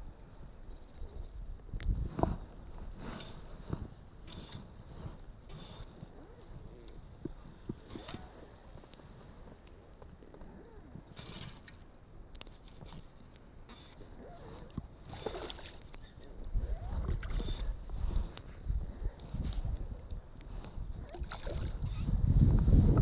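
Small waves lap gently.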